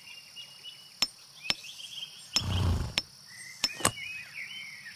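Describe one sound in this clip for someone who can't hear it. A hammer taps on metal several times.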